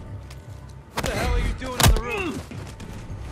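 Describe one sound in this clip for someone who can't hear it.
A man shouts angrily at close range.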